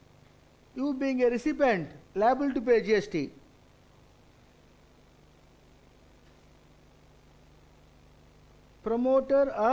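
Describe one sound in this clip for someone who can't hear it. A middle-aged man lectures calmly into a microphone, with pauses.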